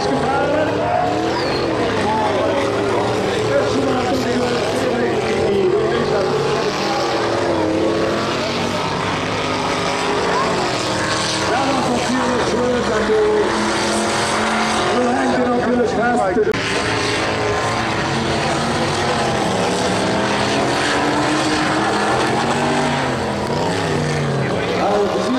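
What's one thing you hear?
Diesel engines of racing combine harvesters rev hard.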